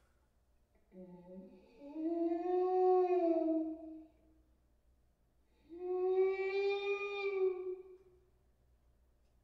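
A trumpet plays long, sustained notes in a small, echoing room.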